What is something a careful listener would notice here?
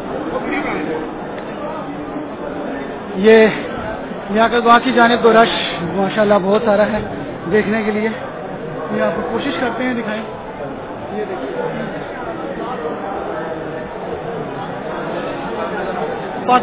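A large outdoor crowd roars in the distance.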